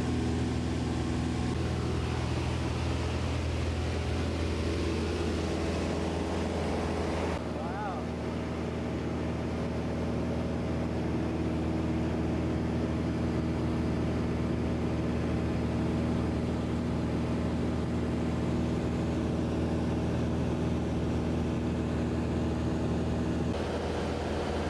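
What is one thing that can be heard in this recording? Wind roars past an open aircraft door.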